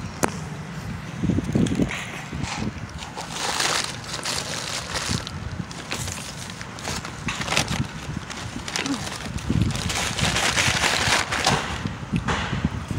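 A paper bag crinkles and rustles close by.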